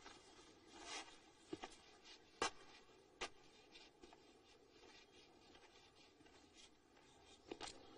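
A quill pen scratches on paper.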